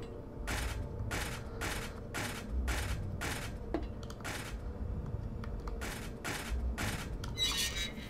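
Footsteps thud steadily and evenly across a hard floor.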